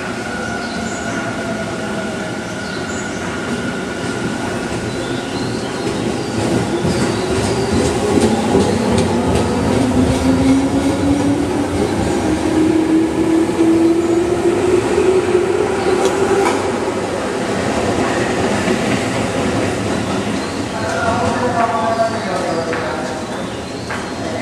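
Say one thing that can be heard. A train rumbles along the rails through an echoing underground station.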